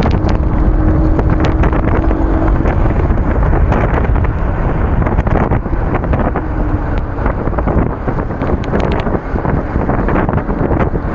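Wind rumbles and buffets against a microphone while riding at speed.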